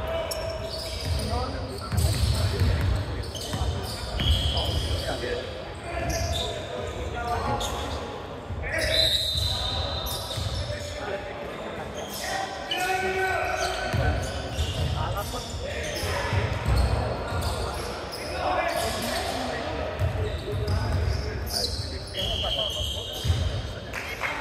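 Players shout and call to each other in a large echoing gym.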